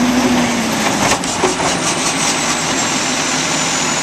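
Trash tumbles out of a bin into a truck.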